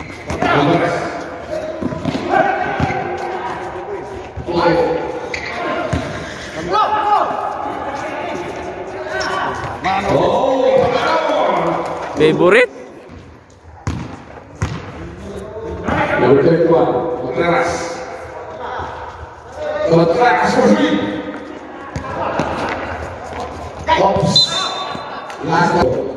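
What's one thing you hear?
A basketball bounces on the hard floor.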